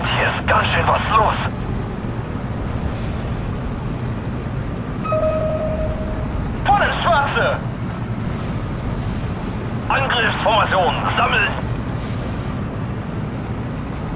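Explosions rumble dully in the distance.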